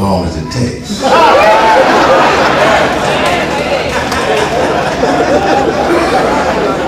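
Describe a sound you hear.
An audience laughs loudly together.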